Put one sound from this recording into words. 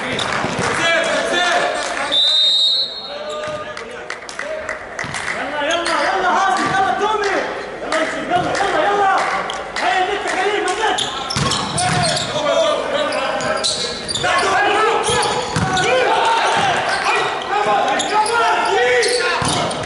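Young men call out and shout to each other.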